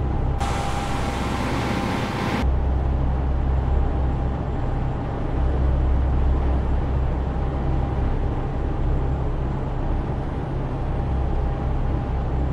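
A truck engine drones low and steady inside the cab.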